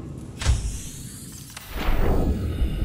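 Water gurgles and rushes underwater.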